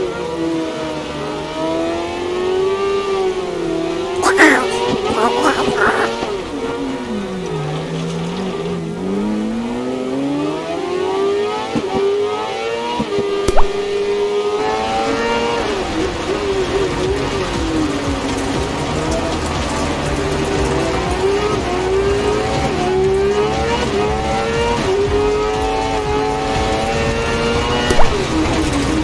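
A racing car engine whines and revs up and down.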